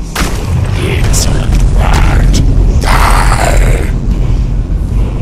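A man's deep voice shouts a threat, echoing in a large stone hall.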